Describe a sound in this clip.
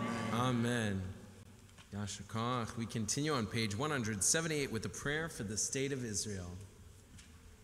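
A man chants melodically through a microphone.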